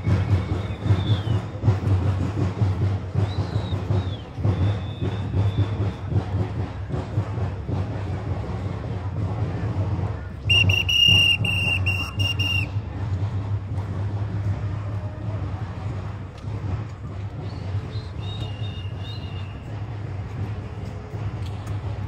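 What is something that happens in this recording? A crowd of dancers stomps along a street outdoors.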